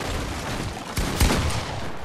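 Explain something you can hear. Wooden walls shatter and crash apart.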